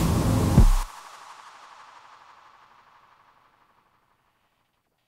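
Electronic synthesizer music plays loudly, then fades away into reverberation.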